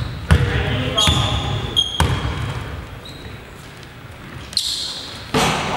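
Sneakers squeak sharply.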